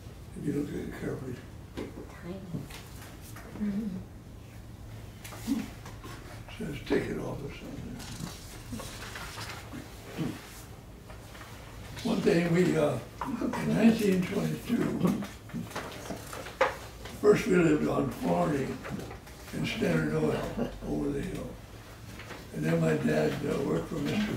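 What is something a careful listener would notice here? An elderly man talks calmly and close by, pausing now and then.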